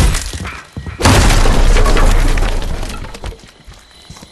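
A wooden door is smashed and splinters loudly.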